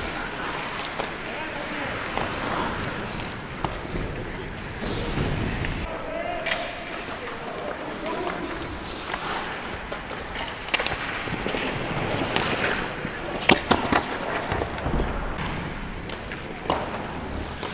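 Hockey pucks clack sharply off sticks and boards in a large echoing arena.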